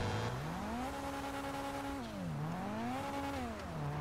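Tyres skid and hiss on snow.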